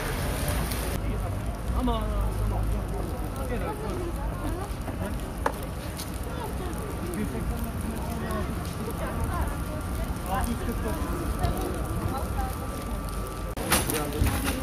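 Men talk nearby in calm voices.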